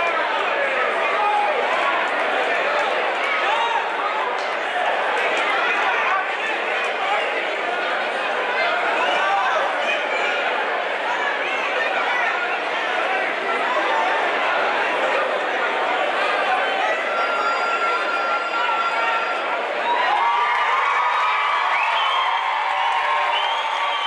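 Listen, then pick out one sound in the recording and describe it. A large crowd chatters and cheers in a big echoing hall.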